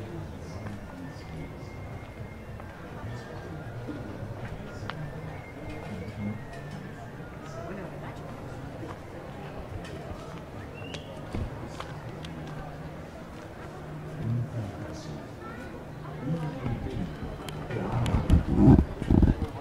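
People talk quietly in the distance outdoors.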